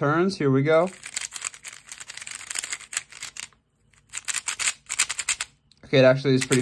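A puzzle cube clicks and clacks as its layers are turned quickly.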